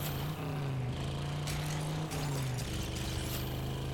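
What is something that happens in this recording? Tyres skid and spray loose dirt.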